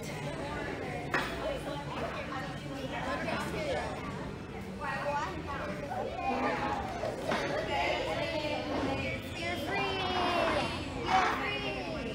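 Young girls talk and chatter with animation close by.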